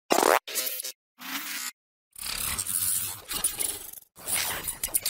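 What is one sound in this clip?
A young man speaks in choppy, heavily distorted bursts.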